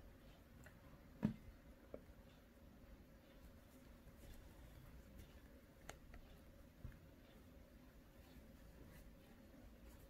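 Hands rustle and fiddle with soft yarn and a plastic-coated wire, with a few faint taps.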